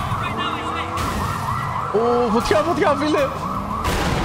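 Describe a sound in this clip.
A police siren wails steadily.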